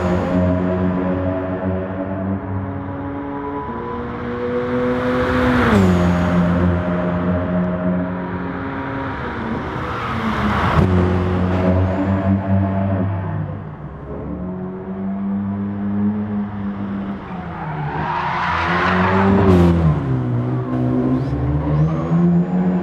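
A racing car engine revs hard, its pitch dropping and climbing as it shifts gears.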